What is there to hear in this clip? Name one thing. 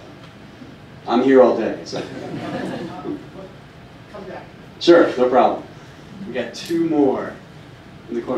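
A man speaks into a microphone through a loudspeaker, calmly and in bursts.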